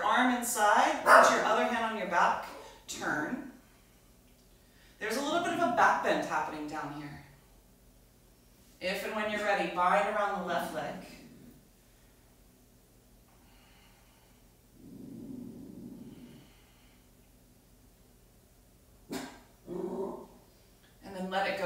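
A woman speaks calmly and clearly close by, with pauses between phrases.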